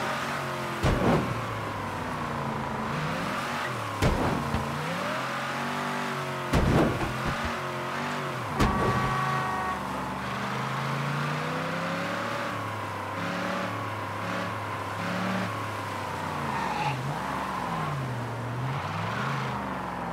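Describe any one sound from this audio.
A car engine revs up and down steadily.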